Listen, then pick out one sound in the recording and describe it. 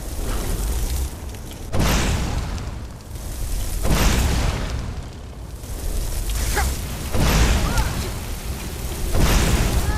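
Fire spells roar out in loud whooshing bursts.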